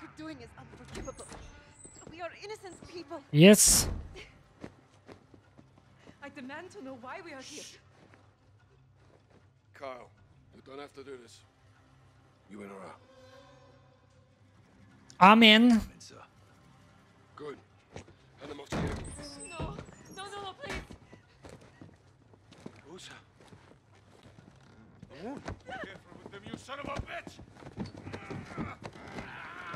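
Men and women in a game speak in tense, dramatic voices.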